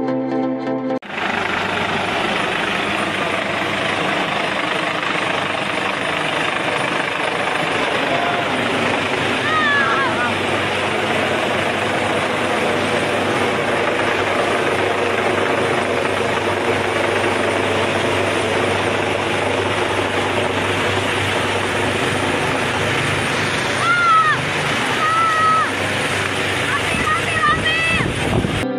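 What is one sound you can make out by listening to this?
A helicopter roars loudly overhead with its rotor thudding.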